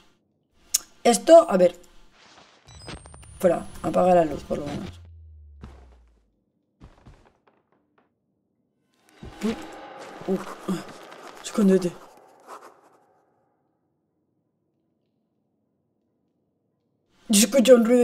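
A young woman talks into a close microphone in short bursts.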